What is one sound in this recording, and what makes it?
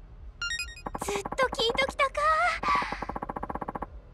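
A young woman speaks softly and warmly.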